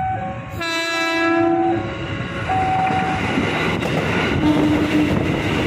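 A train rolls closer and passes by, rumbling loudly.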